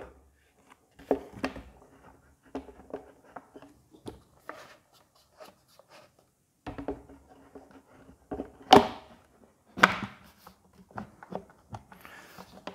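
Plastic tubes clunk and click as they are fitted together.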